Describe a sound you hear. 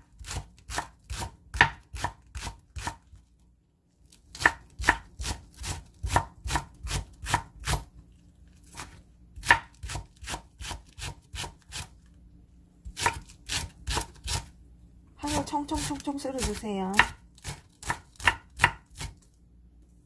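A knife chops rapidly on a wooden board.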